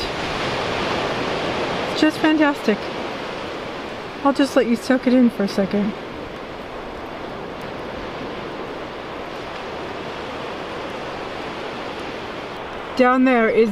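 Waves wash softly onto a beach far below.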